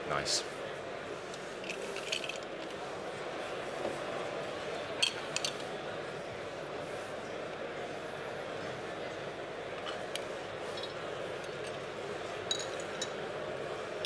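Glass bottles and glasses clink.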